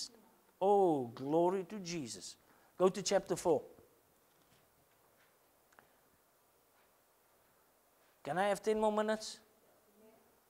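A middle-aged man speaks through a microphone, in short bursts with long pauses.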